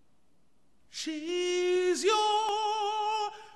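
A man sings loud, long, sustained notes in a powerful voice close by.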